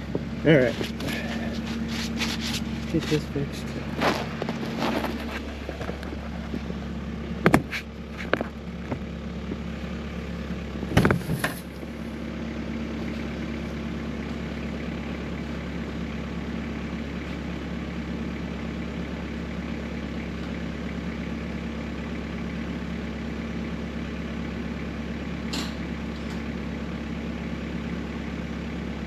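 A snowblower engine hums steadily nearby.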